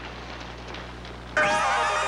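Fires crackle and roar.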